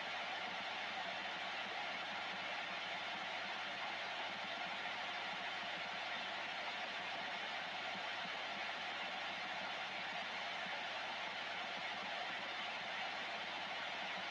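A radio loudspeaker hisses with steady static.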